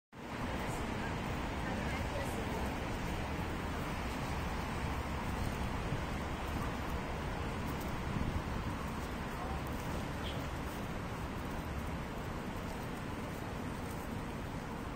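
Wind rushes steadily through the trees outdoors.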